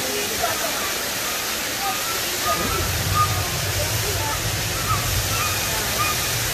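Water laps and splashes gently nearby.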